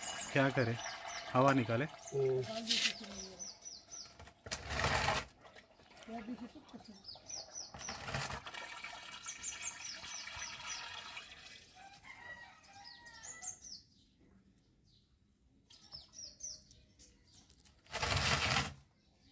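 Thick oil pours in a stream into a plastic funnel.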